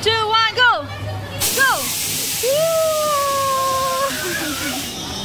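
Young children shriek and squeal playfully nearby.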